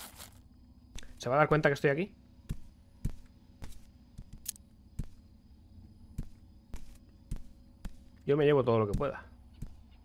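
Footsteps thud slowly across a wooden floor.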